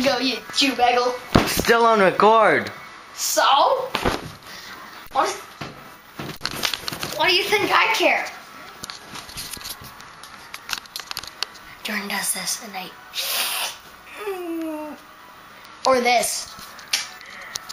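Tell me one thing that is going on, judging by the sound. Clothing rustles and bumps against the microphone.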